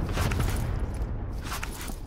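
An armour plate clicks into place.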